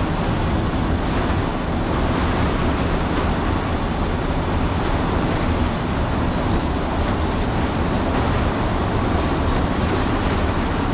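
Tyres hum on the road at speed.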